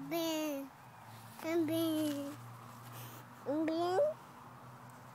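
A toddler calls out in short, excited bursts close by.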